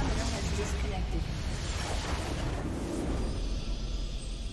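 Fantasy battle effects crash and boom loudly.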